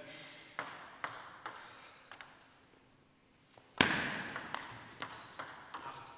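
A ping-pong ball clicks sharply against paddles and the table in a quick rally.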